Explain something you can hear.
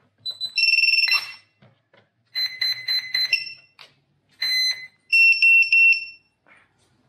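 Electronic beeps sound in short bursts.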